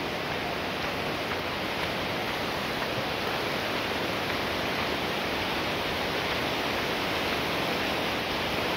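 A shallow stream babbles and trickles over stones.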